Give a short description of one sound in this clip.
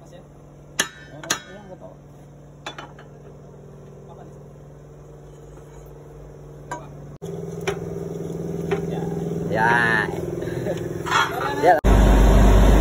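A hammer strikes a metal pin with sharp ringing clanks.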